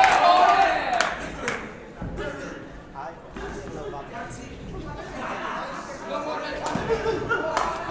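Punches thud against a boxer's body and gloves.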